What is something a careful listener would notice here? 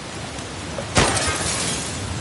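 A pistol fires a single loud shot that rings out.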